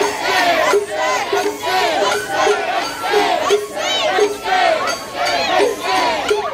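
A crowd of children and adults chants loudly together in a rhythmic call outdoors.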